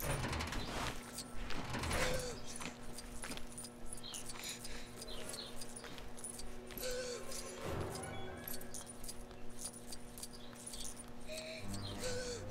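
Small coins jingle and chime in quick bursts.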